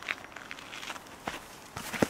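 Footsteps thud on a rubber tee mat outdoors.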